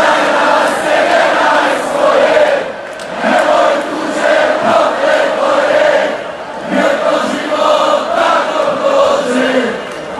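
A man sings into a microphone through loud speakers.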